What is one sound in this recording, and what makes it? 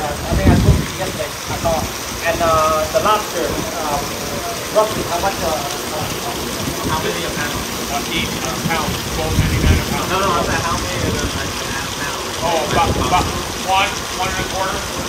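Several men talk with animation nearby.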